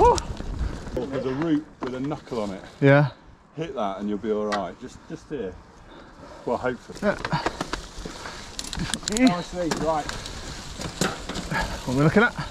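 A man talks casually nearby outdoors.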